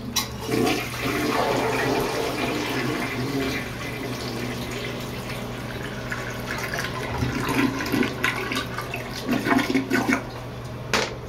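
A toilet flushes with rushing, gurgling water.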